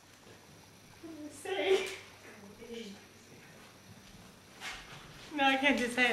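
Women talk and laugh nearby.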